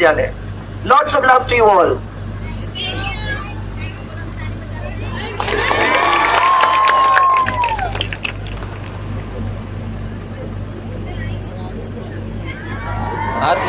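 A crowd of men and women shout and cheer loudly outdoors.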